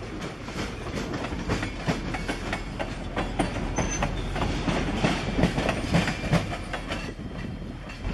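Train wheels clatter rhythmically over rail joints as tank cars roll past close by.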